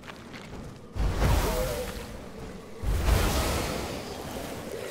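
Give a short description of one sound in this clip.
Fiery spell blasts whoosh and roar in bursts.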